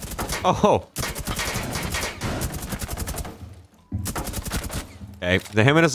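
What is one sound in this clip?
A rifle fires rapid bursts of gunshots close by.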